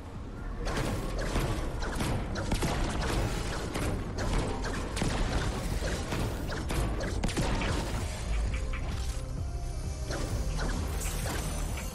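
A pickaxe smashes into metal with sharp cracking hits.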